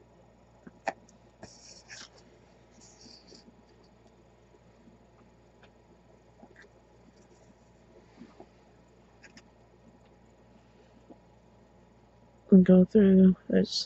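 Small beads click softly against a paper card.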